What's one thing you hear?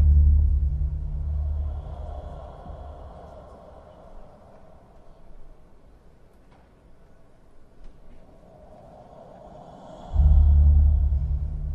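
A man's bare feet pad softly across a wooden floor.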